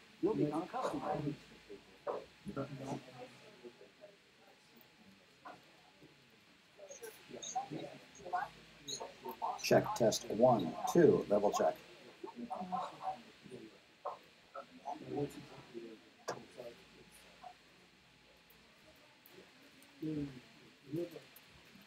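A man talks, with pauses.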